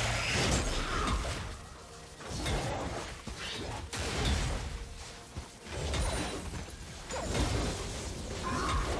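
Magic spell effects whoosh and crackle during a fight.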